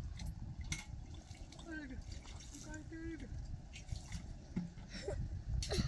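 Water splashes as it is poured into a pot.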